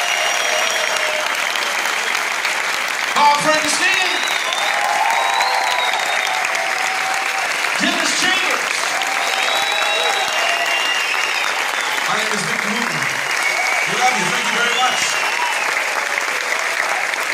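An audience cheers and applauds in a large hall.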